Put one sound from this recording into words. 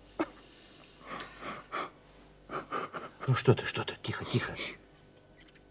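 A man speaks softly and comfortingly close by.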